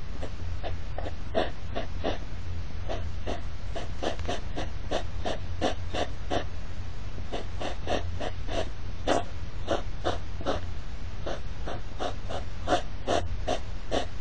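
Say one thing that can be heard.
A hedgehog huffs and snorts loudly in quick, rhythmic bursts.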